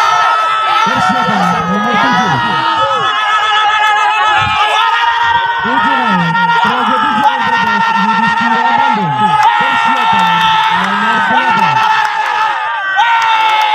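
A large crowd of men cheers and shouts excitedly outdoors.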